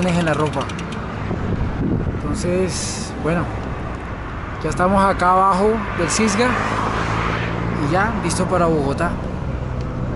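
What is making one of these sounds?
A man talks animatedly close to a microphone.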